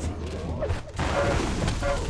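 An energy weapon fires with a steady electric crackling buzz.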